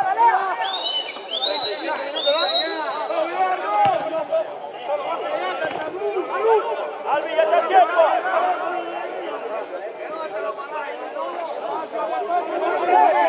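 Footballers shout to each other from across an outdoor pitch.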